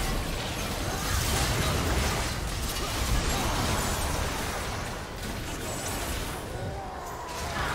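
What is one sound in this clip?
Magic blasts crackle and boom in a fast video game battle.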